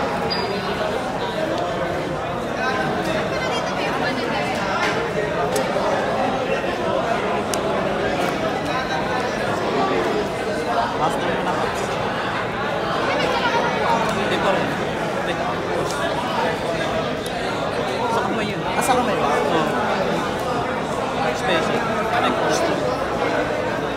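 Playing cards tap and slide on a soft mat.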